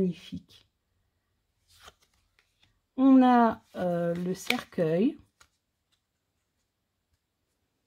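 Playing cards slide and rustle softly as they are shuffled in the hands.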